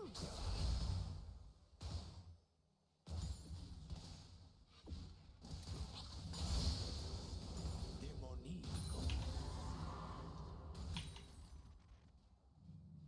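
Game sound effects of clashing blows and bursting spells play in quick succession.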